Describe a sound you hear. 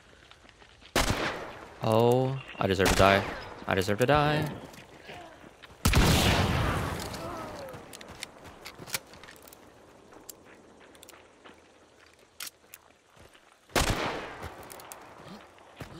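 Loud gunshots bang and echo.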